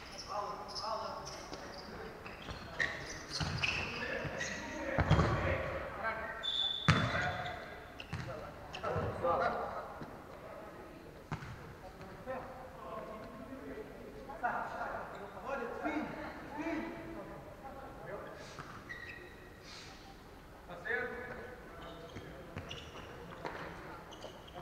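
Players shout and call to each other in a large echoing hall.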